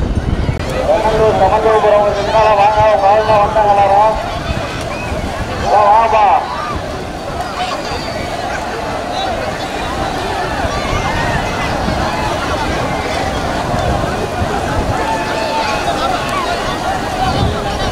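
Water splashes as many people wade through a river.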